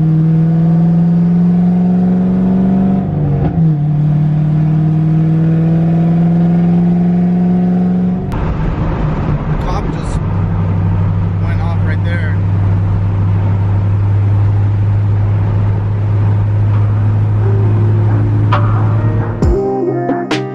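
A car engine drones loudly and climbs in pitch as the car speeds up.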